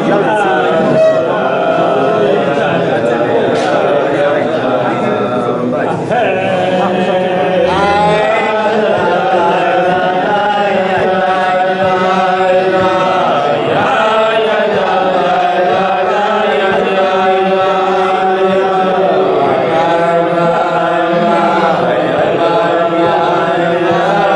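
An elderly man sings a slow, wordless melody close by.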